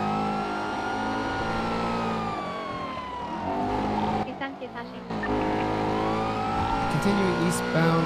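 A car engine roars and revs, dropping briefly as the gears shift.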